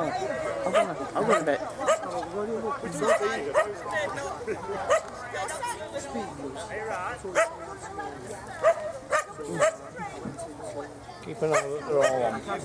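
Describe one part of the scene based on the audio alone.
A woman talks casually nearby outdoors.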